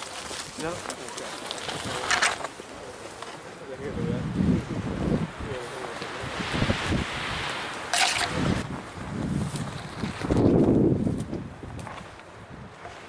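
Dry branches rustle and scrape close by.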